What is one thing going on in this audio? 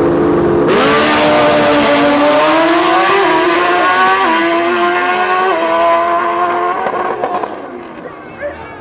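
A drag racing engine roars loudly, shifts up through its gears and fades into the distance.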